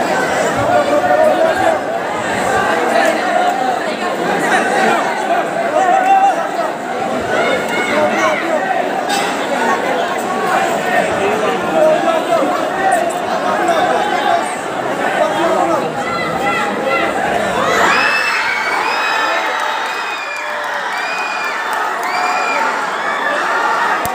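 A large crowd cheers and shouts loudly nearby.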